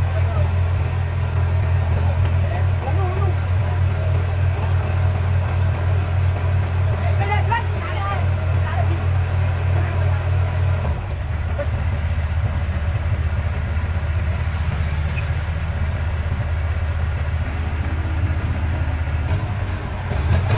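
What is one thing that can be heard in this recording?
A heavy diesel engine idles with a steady, deep rumble.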